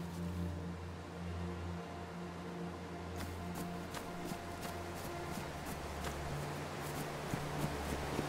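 Footsteps crunch through dry brush.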